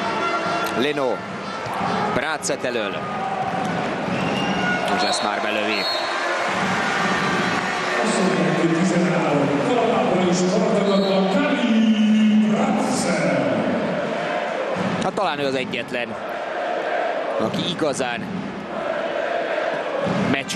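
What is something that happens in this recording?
A large crowd cheers and chants loudly in an echoing arena.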